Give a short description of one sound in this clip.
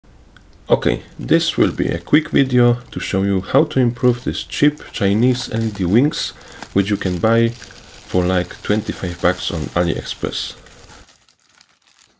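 Plastic wrapping crinkles as hands handle it.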